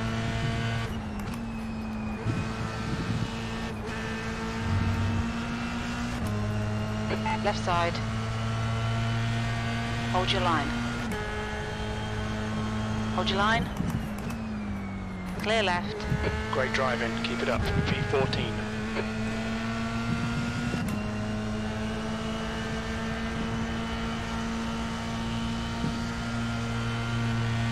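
A racing car engine roars steadily, its pitch jumping with each gear change.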